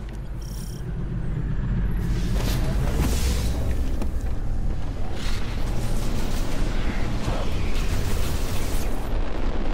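A hover bike engine hums steadily.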